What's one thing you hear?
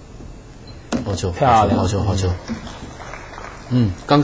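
Billiard balls click together on a table.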